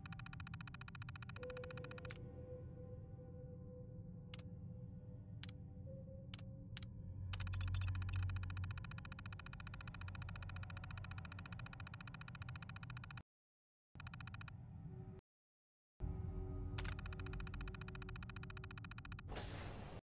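A computer terminal hums with a steady electric buzz.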